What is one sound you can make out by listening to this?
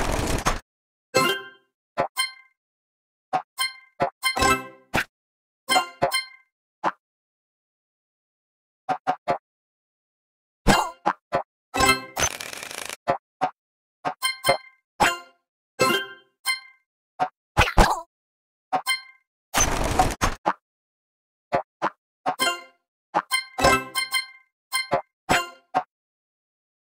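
Short, bright game sound effects chime and pop in quick bursts.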